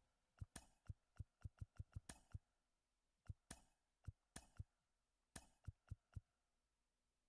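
Short menu clicks tick in quick bursts.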